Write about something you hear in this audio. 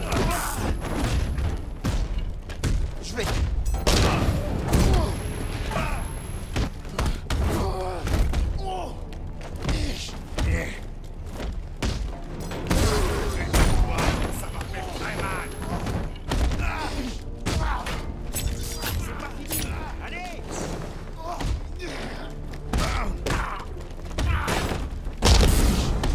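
Fists thud and crack in a rapid brawl.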